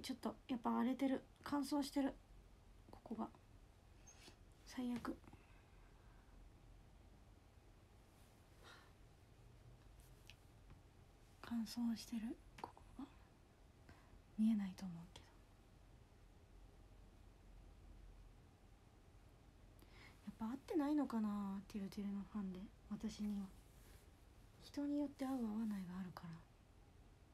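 A young woman talks softly and close by, in short bursts.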